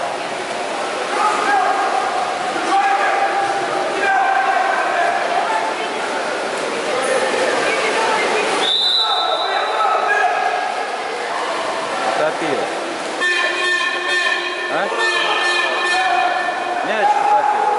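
Players shout to each other across an echoing pool.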